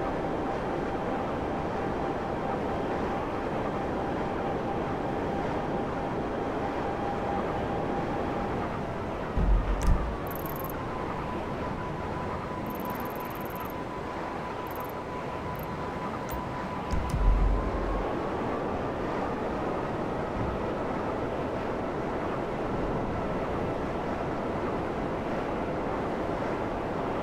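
A hovering jet engine roars steadily.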